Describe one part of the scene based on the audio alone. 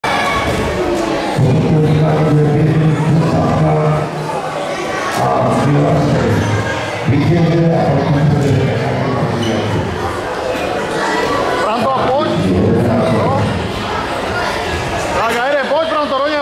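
Children chatter and call out in the background.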